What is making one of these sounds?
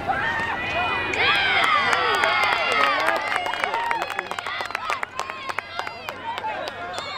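Lacrosse sticks clack against each other.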